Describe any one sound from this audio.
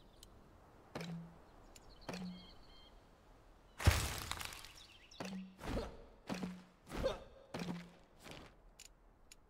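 A pickaxe strikes rock again and again, with short crunching knocks.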